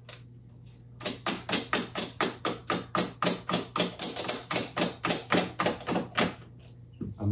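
A hand tool clicks rapidly and evenly.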